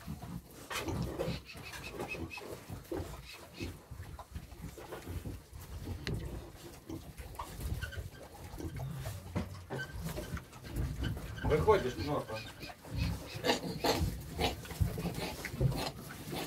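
Pigs' trotters rustle through straw.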